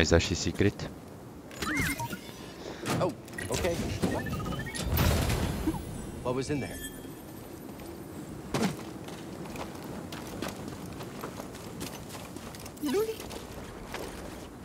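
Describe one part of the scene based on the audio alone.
A young man talks into a headset microphone with animation.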